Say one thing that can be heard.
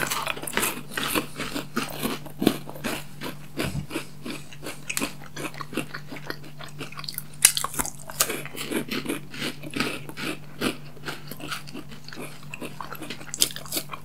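Chewing and smacking mouth sounds come close to a microphone.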